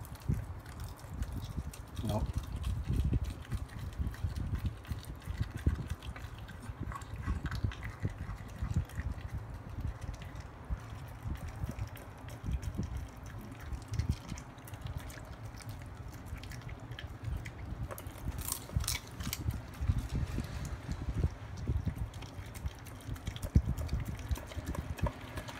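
A small terrier puppy chomps and slurps wet food from a metal bowl.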